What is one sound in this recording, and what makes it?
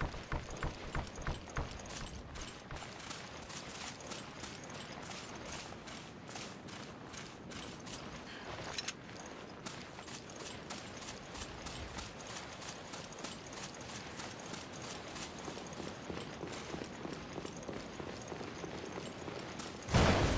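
Footsteps crunch steadily over dirt and gravel.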